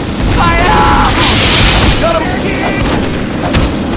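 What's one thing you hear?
A game flamethrower roars.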